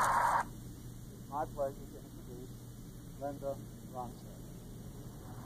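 A man speaks calmly into a microphone, heard through a television loudspeaker.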